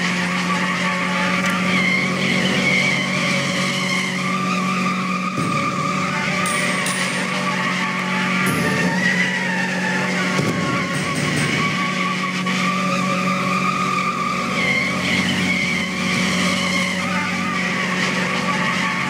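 Tyres screech as a car spins in circles.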